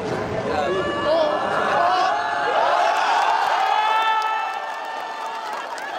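A crowd of men cheers and shouts.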